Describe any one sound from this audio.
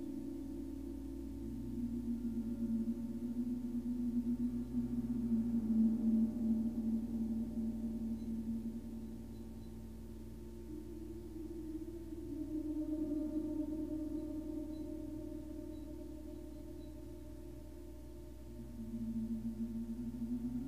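Singing bowls ring with long, humming tones that swell and fade.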